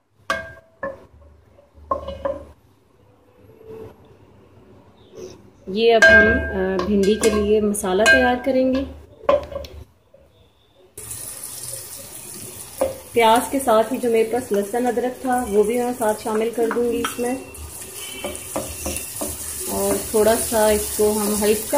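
A metal spoon scrapes and stirs inside a pot.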